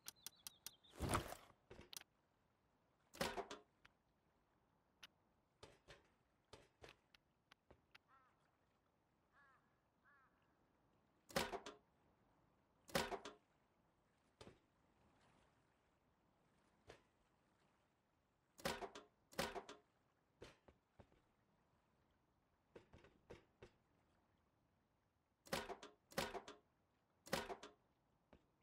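Heavy metal pieces clank and thud into place, again and again.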